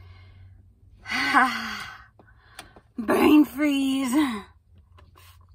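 A young woman groans and cries out loudly close by.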